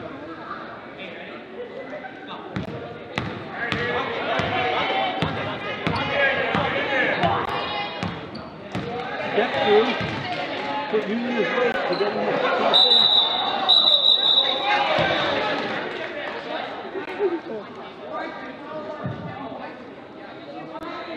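A basketball bounces on a wooden floor in a large echoing gym.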